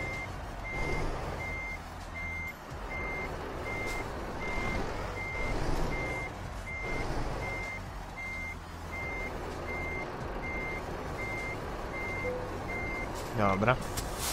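A reversing alarm beeps in a steady rhythm.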